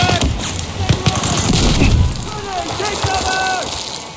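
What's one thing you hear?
Gunfire crackles back from a distance.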